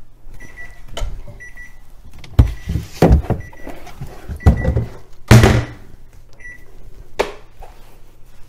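Objects clatter and knock against a hard surface.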